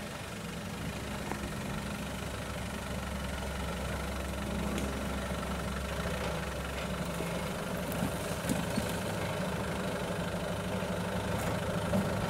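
An off-road vehicle engine rumbles low and revs as it climbs over rocks.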